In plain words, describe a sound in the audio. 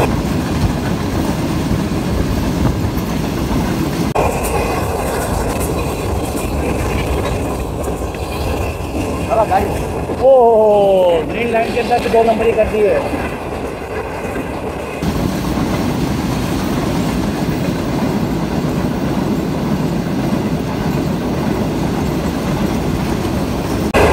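A passenger train rumbles past on the tracks.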